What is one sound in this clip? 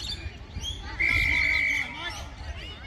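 A referee's whistle blows a long, sharp blast.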